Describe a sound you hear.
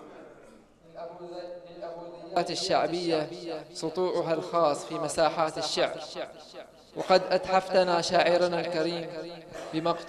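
A young man chants close into a microphone in a drawn-out, wavering voice.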